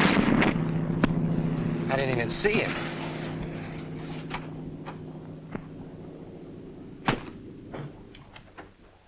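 Rifle shots crack one at a time.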